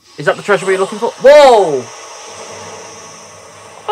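A loud magical blast bursts and rings out.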